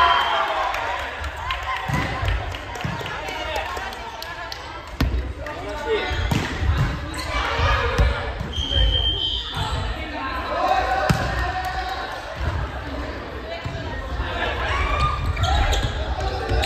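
Young women and men call out and chatter in a large echoing hall.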